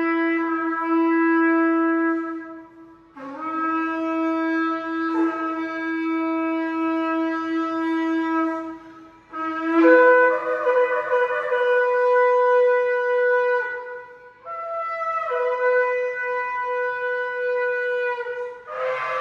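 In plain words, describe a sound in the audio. A man blows long, loud blasts on a horn in an echoing room, the pitch jumping up between blasts.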